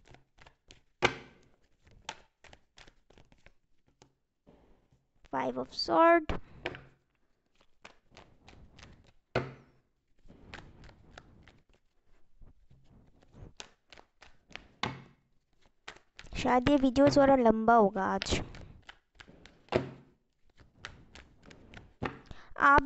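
Playing cards are shuffled and laid down with soft flicks and taps.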